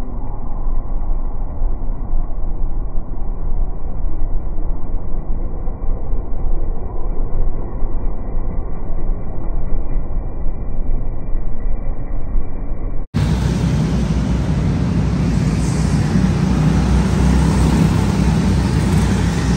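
Go-kart engines buzz and whine as karts race past in a large echoing hall.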